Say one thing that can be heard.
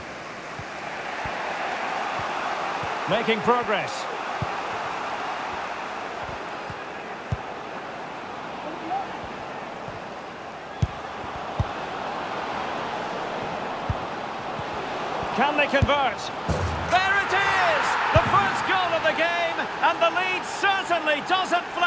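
A stadium crowd murmurs and chants steadily.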